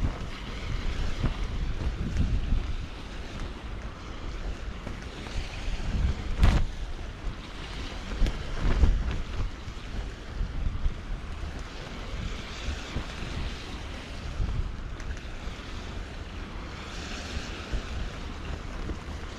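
Wind gusts outdoors and buffets the microphone.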